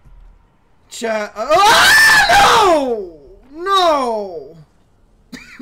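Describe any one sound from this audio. A young man yells loudly with a rising and falling voice through a microphone.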